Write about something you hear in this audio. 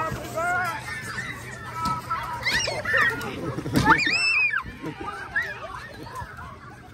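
Children shriek and laugh excitedly outdoors.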